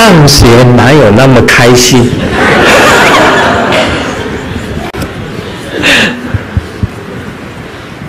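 An elderly man laughs through a clip-on microphone.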